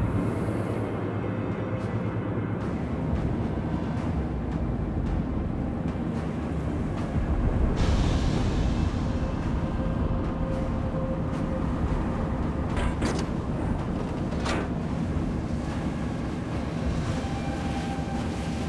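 Waves splash and churn around a submarine's hull.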